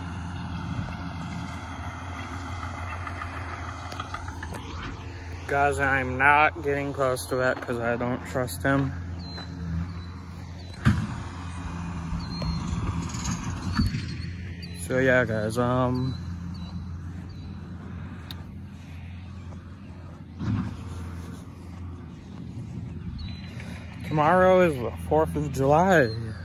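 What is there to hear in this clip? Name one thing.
A lawn mower engine hums steadily in the distance.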